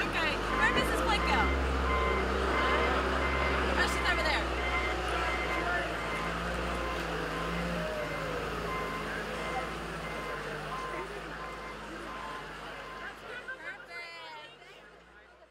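A large vehicle's engine rumbles loudly as it drives slowly past.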